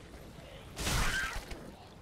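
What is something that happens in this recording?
A sword slashes into a creature with a heavy thud.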